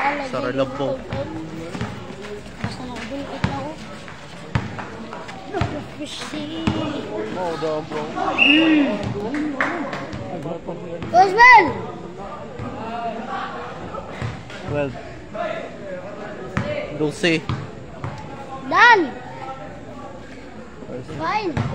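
A basketball bounces on a concrete court.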